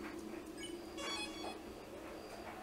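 A bright, sparkling chime rings as a game is saved.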